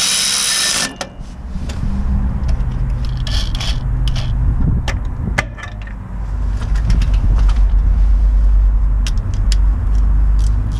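Metal clicks and clanks as bolts are handled.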